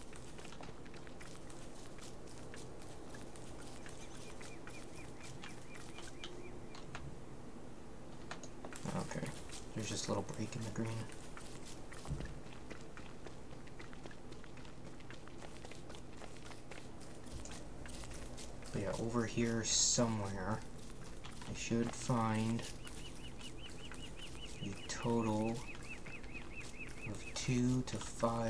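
Footsteps patter softly on the ground.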